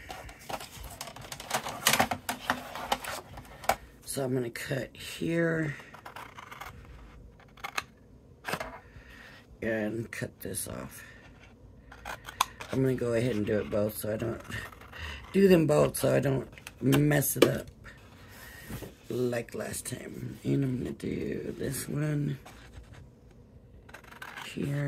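Stiff card rustles and scrapes.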